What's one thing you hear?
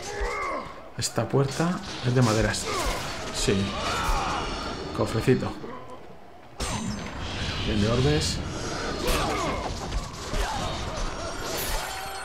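Blades whoosh and clang in a fierce fight.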